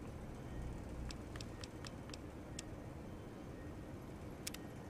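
Soft clicks tick as a menu selection moves from item to item.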